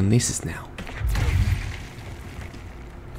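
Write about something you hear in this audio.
A heavy object crashes down and breaks apart with a loud thud.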